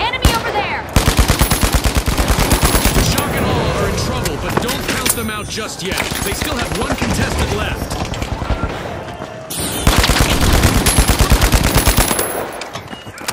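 Rapid gunfire rattles in close bursts.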